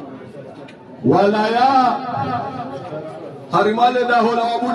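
A man chants loudly and close by.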